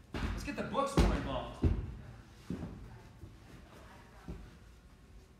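Hands and knees thump softly on a padded mat.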